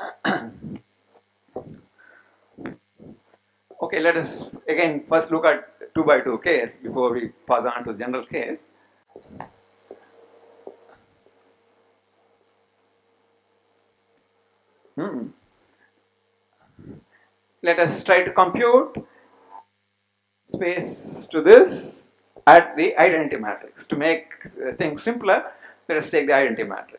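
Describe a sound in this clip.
An elderly man lectures calmly through a headset microphone, with pauses.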